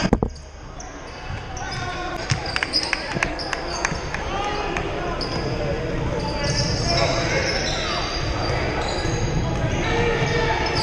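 A crowd of spectators murmurs and calls out in a large echoing gym.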